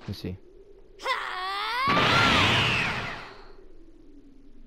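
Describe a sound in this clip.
A roaring burst of energy swells and fades.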